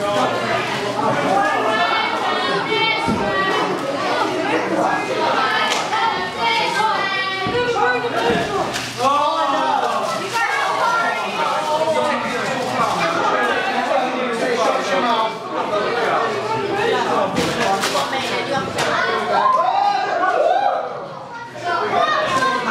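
A crowd chants and cheers loudly in an echoing hall.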